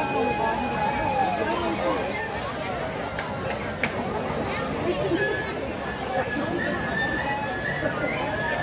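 An audience murmurs and chatters nearby.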